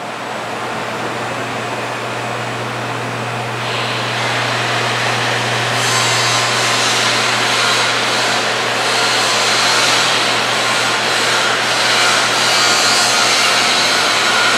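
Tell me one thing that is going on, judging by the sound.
An electric motor hums steadily, echoing in a large hall.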